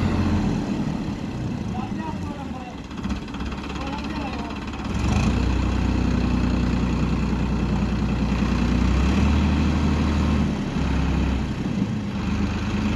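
A tractor engine rumbles steadily nearby, growing louder partway through.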